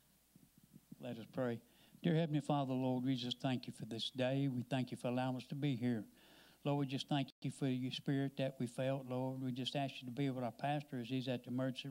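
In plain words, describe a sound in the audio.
A man speaks with a handheld microphone, heard through loudspeakers in a large echoing hall.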